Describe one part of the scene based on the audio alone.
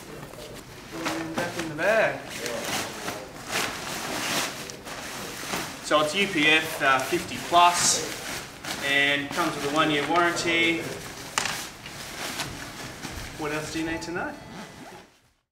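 A young man speaks calmly to the listener, close by.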